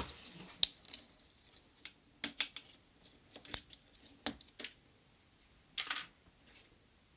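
Small plastic keys click softly as fingers press and fit them.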